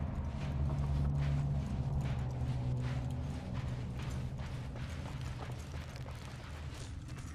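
Footsteps crunch on a rocky floor at a steady walking pace.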